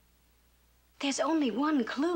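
A woman speaks gently nearby.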